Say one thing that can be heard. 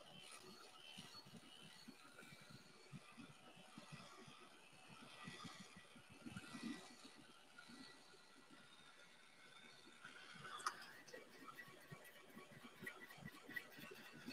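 A heat gun blows with a steady whirring hiss.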